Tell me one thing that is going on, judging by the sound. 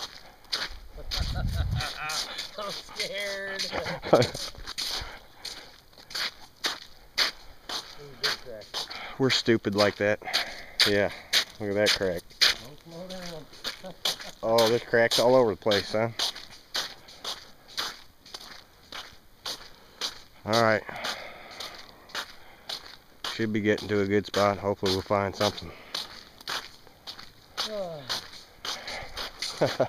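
Footsteps crunch and crackle on ice.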